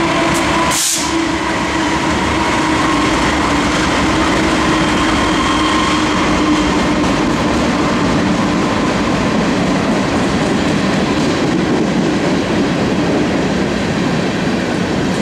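Freight cars clatter and squeal on the rails.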